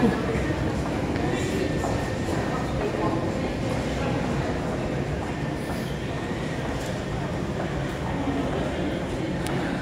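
Distant voices murmur and echo in a tiled tunnel.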